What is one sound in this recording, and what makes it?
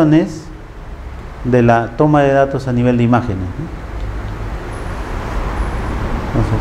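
A man lectures calmly through a microphone.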